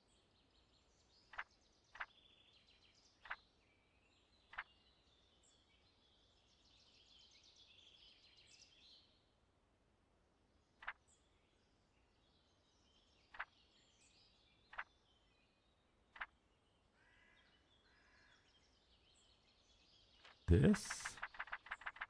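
Book pages flip with a soft papery rustle.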